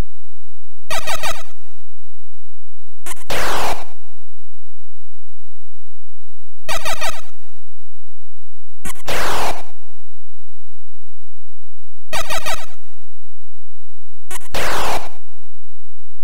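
Harsh buzzing electronic game sound effects play in short bursts, a few seconds apart.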